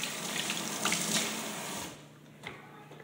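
Water runs from a tap and splashes into a metal sink.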